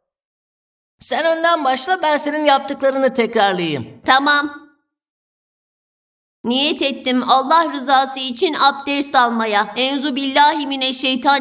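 A young boy speaks cheerfully, close by.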